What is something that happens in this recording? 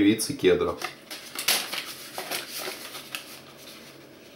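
A small cardboard box rustles and scrapes.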